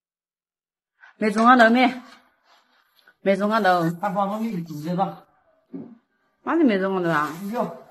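A woman speaks with animation close by.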